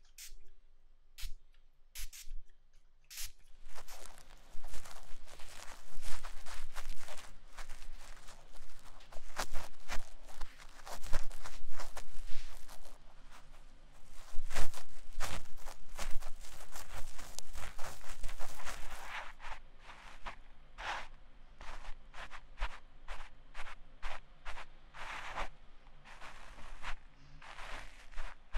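A young woman giggles.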